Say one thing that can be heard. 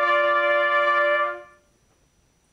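A brass ensemble holds a final chord that rings in a large room and then stops.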